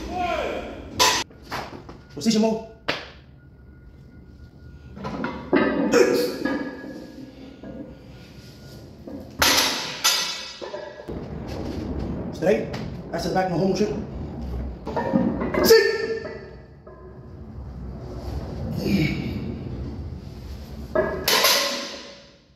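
Iron weight plates clank loudly as a barbell is dropped onto the floor.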